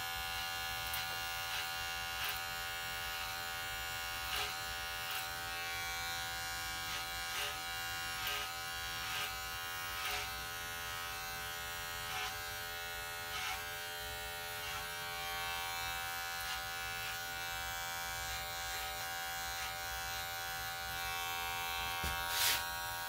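A comb clicks and taps now and then.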